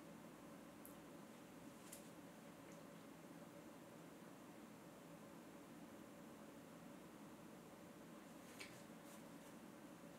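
A small plastic case clicks and taps as it is turned over in the hands.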